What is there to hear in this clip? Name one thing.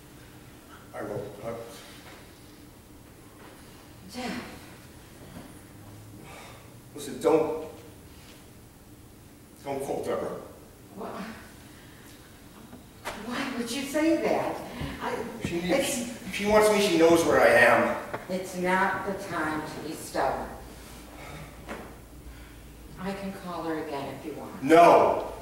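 A woman speaks clearly from a stage, heard from the audience.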